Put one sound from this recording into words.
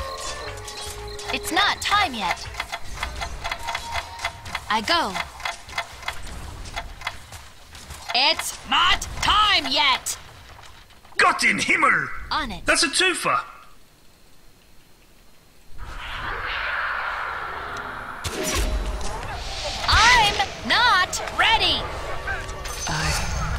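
Arrows and spells hit with sharp clicks and bursts in a fantasy battle game.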